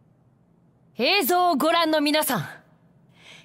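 A young woman calls out loudly, announcing.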